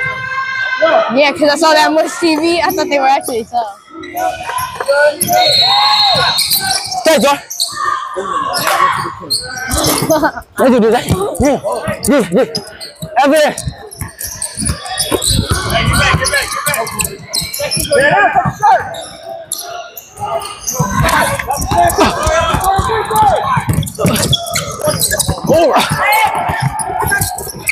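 Spectators talk and call out nearby in a large echoing gym.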